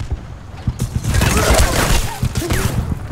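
A second explosion bursts nearby.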